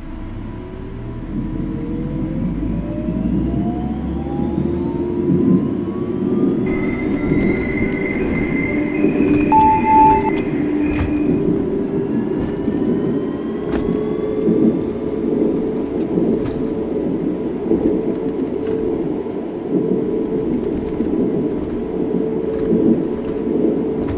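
A train rumbles and rattles steadily along its track.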